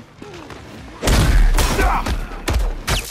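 Heavy punches thud and smack against a body.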